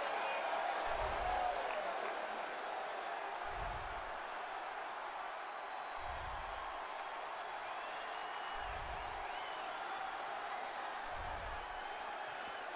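A large crowd roars and cheers steadily in a big echoing arena.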